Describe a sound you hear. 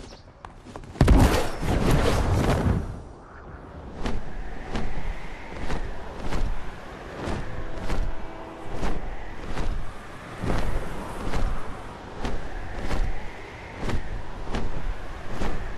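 Large wings beat with steady whooshing flaps.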